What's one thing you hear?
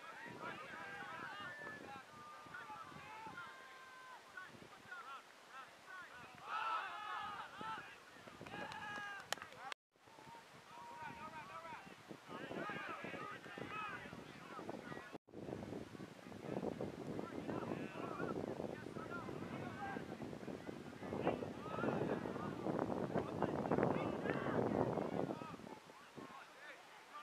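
Young men shout and call to each other across an open field outdoors.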